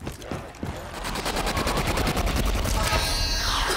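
A loud crackling energy burst roars.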